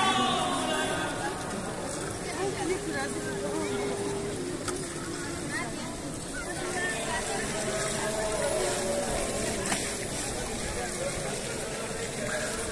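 A large crowd murmurs and chatters all around in a wide open space.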